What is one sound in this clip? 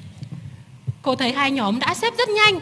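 Young girls speak together in unison through a microphone, loud and clear.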